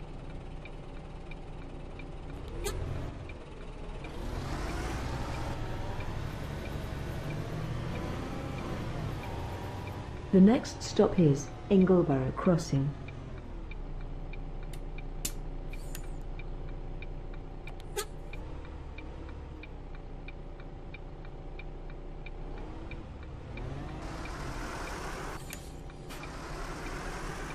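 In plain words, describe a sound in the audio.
A bus engine hums and revs steadily.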